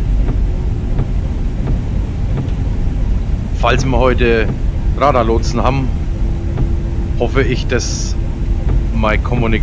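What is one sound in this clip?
Jet engines rumble low and steady.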